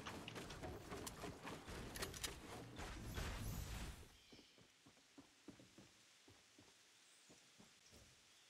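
Footsteps patter steadily across a roof and wooden boards.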